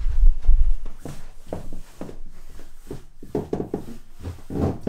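Footsteps thud down a staircase.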